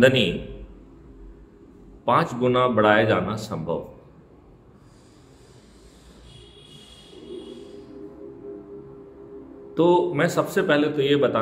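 A middle-aged man speaks calmly and closely into a microphone, pausing between phrases.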